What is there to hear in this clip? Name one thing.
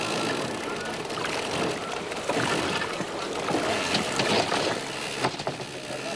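A metal trap clanks and rattles against a boat's side.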